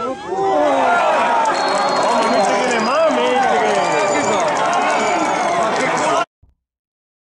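A crowd of spectators cheers and shouts loudly nearby, outdoors.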